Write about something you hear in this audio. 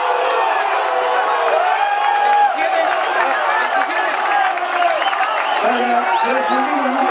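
Young men shout and call out to each other outdoors at a distance.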